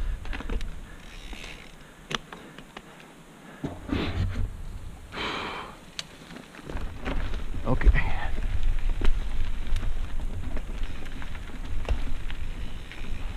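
Mountain bike tyres rumble over a dirt trail.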